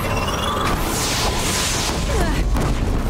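An explosion bursts with a loud crackling blast.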